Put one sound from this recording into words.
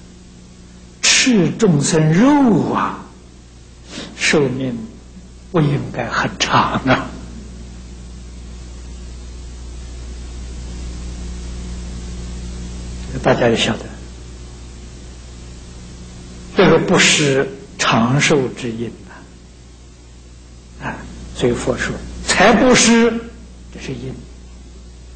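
An elderly man speaks calmly and slowly through a microphone, with long pauses.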